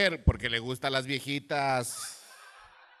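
A man speaks loudly into a microphone, with animation.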